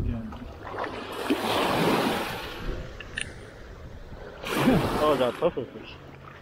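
A wave breaks and foams noisily over the shore.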